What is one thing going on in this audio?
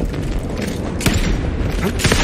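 An explosion bursts with a loud crack.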